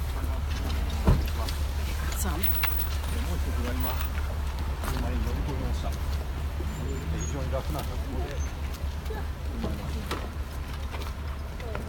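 A crowd of men and women talk and call out over one another close by.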